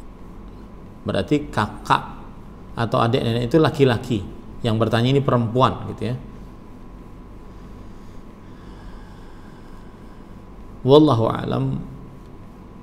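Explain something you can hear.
A man speaks calmly close to a microphone, with pauses.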